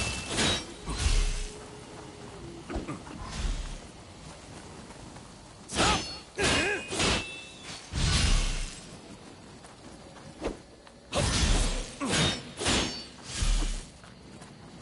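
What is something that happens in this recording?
Blades strike a foe with heavy impacts.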